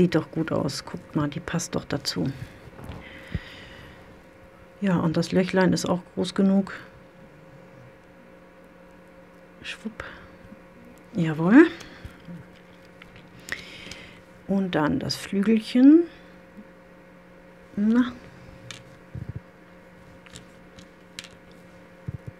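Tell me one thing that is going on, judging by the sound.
Small metal pieces click softly.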